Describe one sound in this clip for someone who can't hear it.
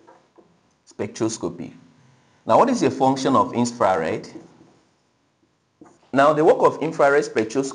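A young man speaks clearly and calmly, close by.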